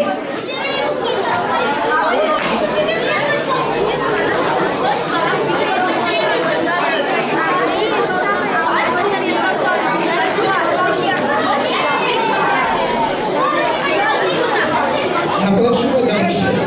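A crowd of children chatter and call out all around, echoing in a large hall.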